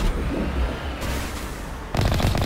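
An energy weapon fires with sharp blasts.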